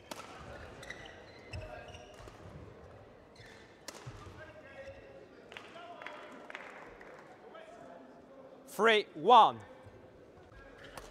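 A shuttlecock is struck sharply by rackets in a rally.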